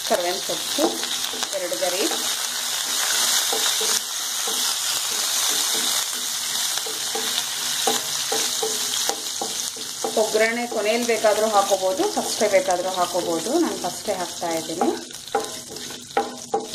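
A wooden spoon scrapes and knocks against a metal pan.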